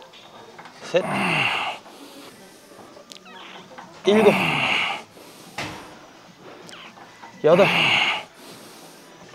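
A man grunts loudly with effort, close to a microphone.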